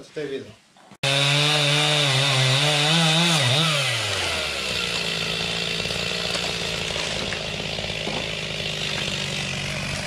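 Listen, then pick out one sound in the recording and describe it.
A chainsaw engine roars, then drops to a rough idle.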